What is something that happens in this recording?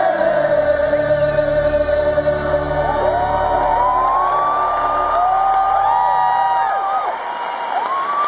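An acoustic guitar rings out with strummed chords through a loudspeaker.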